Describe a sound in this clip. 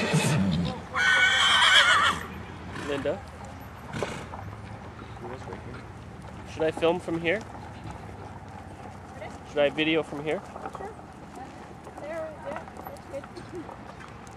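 A horse's hooves thud softly on dirt.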